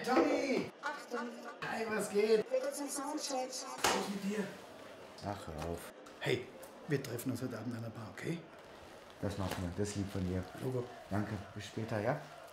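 A middle-aged man speaks with animation, close by.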